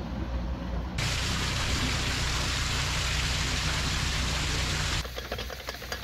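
Water gushes and splashes loudly through a lock gate.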